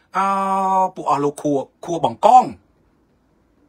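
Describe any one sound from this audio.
A man speaks with emotion close to a microphone.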